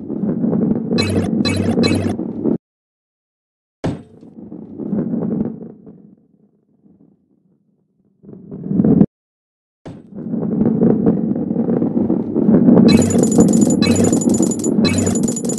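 Coins chime brightly as they are collected.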